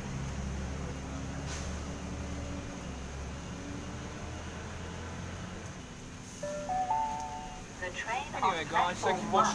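A train approaches and rumbles into the station.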